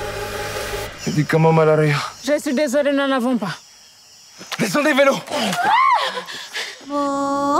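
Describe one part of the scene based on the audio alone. A young man shouts commands close by.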